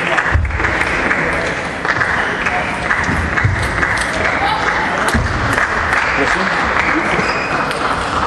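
Table tennis balls click on tables around a large echoing hall.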